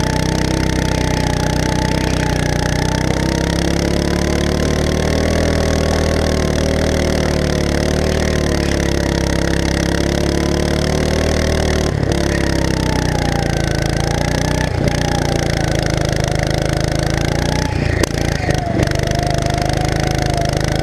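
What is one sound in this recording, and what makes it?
A go-kart engine drones loudly up close, its pitch rising and falling with the speed.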